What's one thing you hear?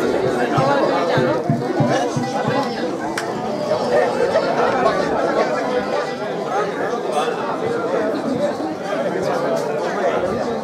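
A double bass plucks a low beat.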